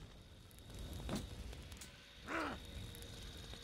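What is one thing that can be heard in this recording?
Magic spells crackle and whoosh in a game.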